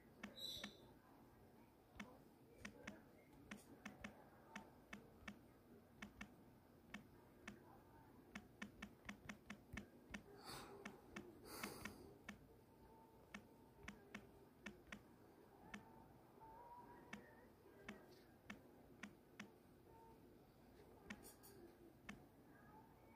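Fingers tap quickly on a phone's touch keyboard with soft clicks.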